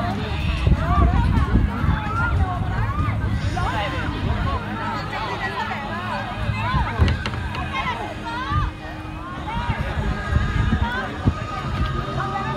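A crowd of young people chatter and call out outdoors.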